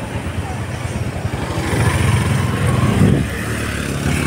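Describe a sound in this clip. Another motorcycle passes by with its engine buzzing.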